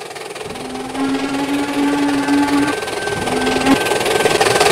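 A steam locomotive whistle blows loudly in long blasts.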